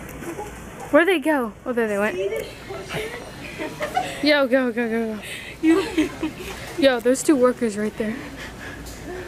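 A girl laughs and squeals loudly nearby.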